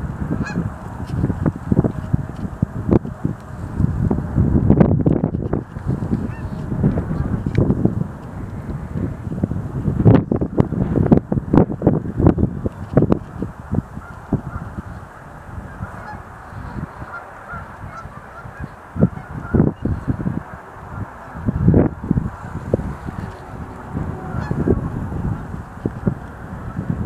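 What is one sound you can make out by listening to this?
Cranes call with rolling, trilling cries in the distance.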